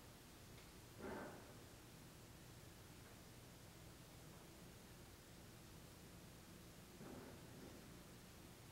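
A man speaks a few soft, calm words close by.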